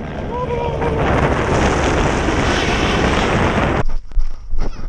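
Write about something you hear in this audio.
Wind roars loudly against a microphone.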